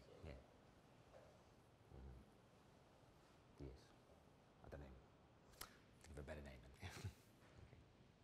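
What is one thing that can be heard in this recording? A middle-aged man speaks calmly and slowly, close by, in short phrases with pauses.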